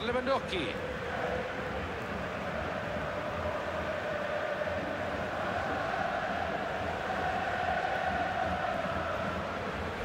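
A large stadium crowd cheers and chants in a steady roar.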